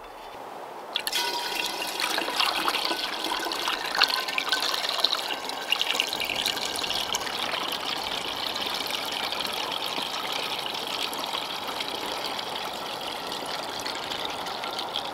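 Liquid pours steadily through a funnel into a glass bottle.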